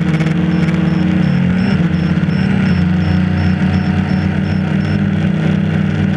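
Drone propellers whir with a steady, high buzz.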